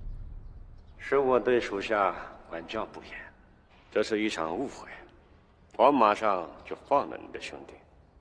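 A man speaks tensely and firmly, close by.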